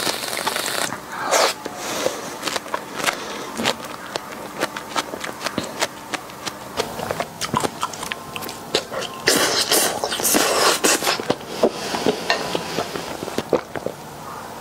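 A young woman chews food with wet smacking sounds close to a microphone.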